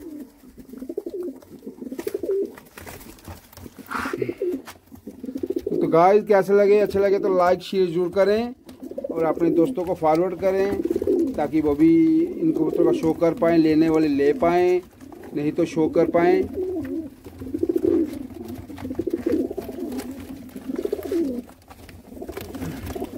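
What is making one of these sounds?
Pigeons coo softly and continuously close by.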